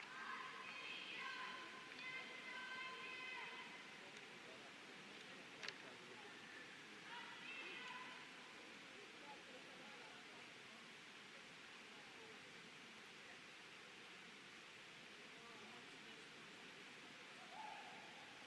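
A faint crowd murmur echoes through a large indoor hall.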